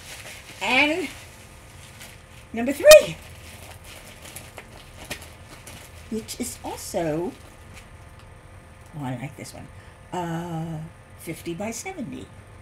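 Plastic sheeting crinkles and rustles as it is rolled up by hand.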